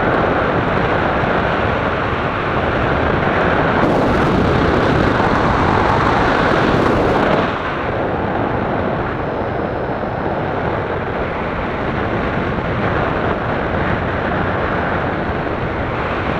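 Strong wind rushes and buffets loudly against the microphone, high up in the open air.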